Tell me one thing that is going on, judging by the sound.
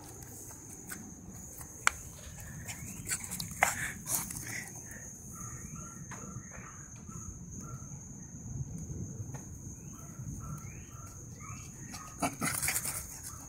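A small dog's paws patter across grass as it runs close by.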